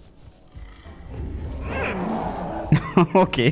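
A large creature roars and attacks.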